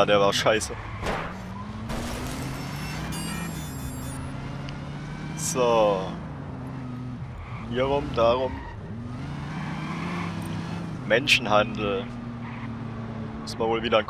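A car engine revs and roars steadily.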